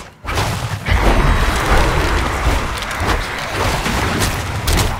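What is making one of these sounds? A magical blast bursts with a roar.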